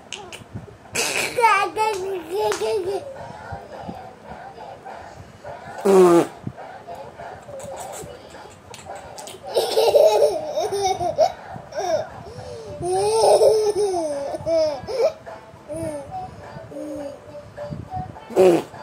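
A young boy laughs and giggles close by.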